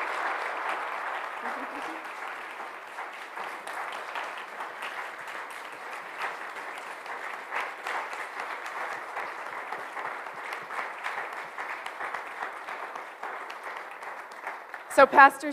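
A crowd claps steadily in a large echoing room.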